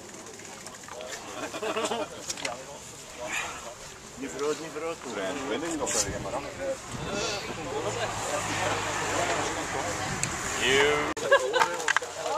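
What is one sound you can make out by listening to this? Several men chat casually nearby outdoors.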